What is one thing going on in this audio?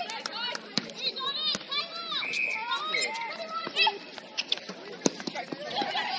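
A ball bounces on a hard court.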